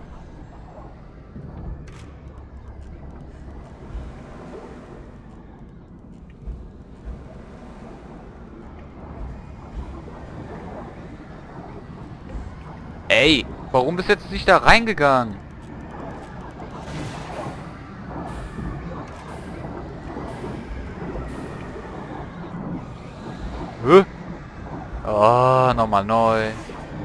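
Jets of steam hiss steadily.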